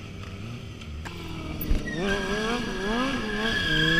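A second motorcycle engine revs.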